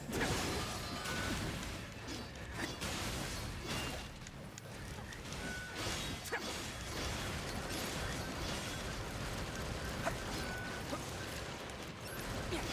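Game sound effects of blows and blasts ring out.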